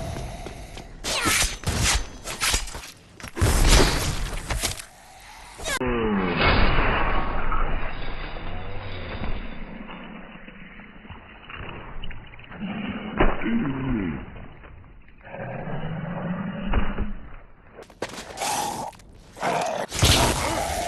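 A blade slashes into flesh with heavy, wet thuds.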